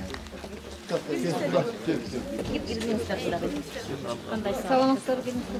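An elderly man talks loudly up close.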